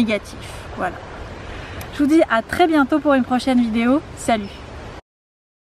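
A young woman speaks cheerfully and close by, outdoors.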